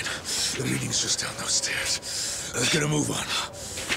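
A man answers in a strained voice.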